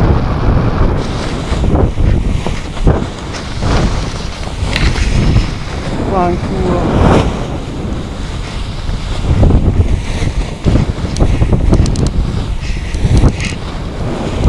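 A paraglider wing flaps and rustles in the wind.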